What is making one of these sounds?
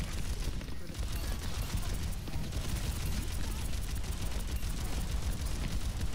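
Explosions boom in a game.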